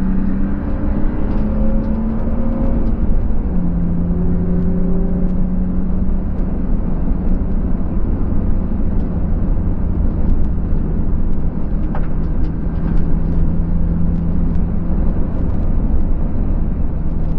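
A car engine drones loudly and steadily from inside the cabin, its pitch shifting with the gears.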